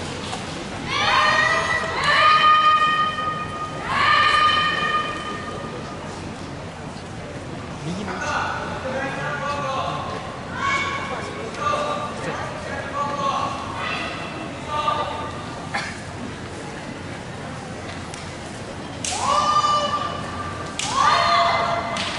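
Young women shout sharp, drawn-out cries in a large echoing hall.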